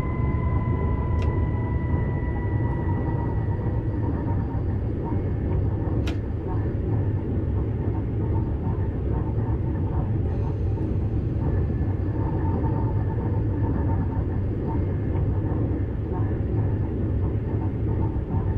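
A train's electric motors hum steadily.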